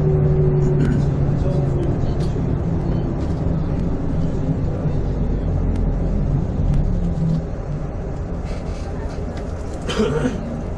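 A vehicle engine hums steadily from inside while driving.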